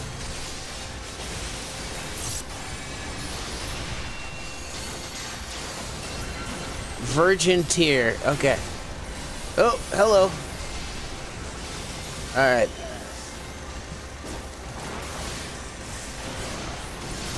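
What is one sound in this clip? Magic blasts and explosions burst and crackle during a fight.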